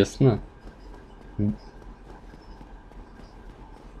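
Footsteps run across a stone floor.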